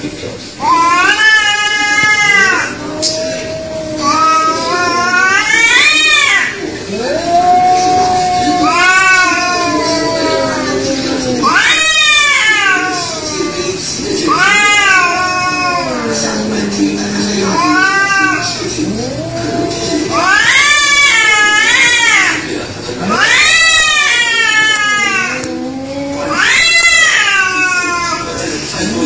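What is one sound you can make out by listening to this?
Two cats yowl and wail at each other in long, rising and falling howls.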